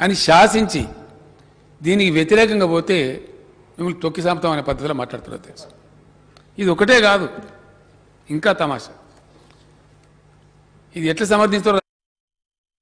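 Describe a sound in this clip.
An elderly man speaks into a microphone in a large hall, in short, measured phrases.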